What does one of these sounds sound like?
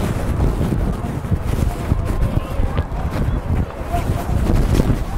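A crowd of young players and spectators chatter outdoors.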